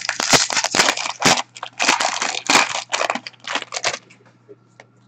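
Plastic wrapping crinkles and rustles in hands close by.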